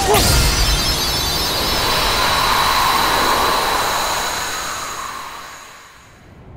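Magic spells burst and sparkle during a fight.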